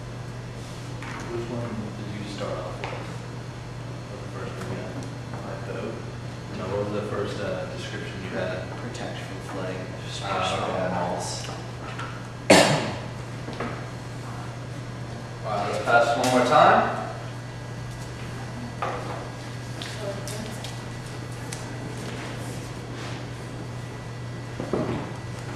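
A young man talks calmly to a group in a room.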